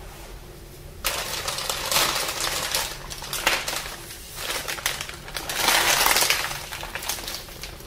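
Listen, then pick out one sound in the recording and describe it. A plastic bag crinkles loudly as hands squeeze it.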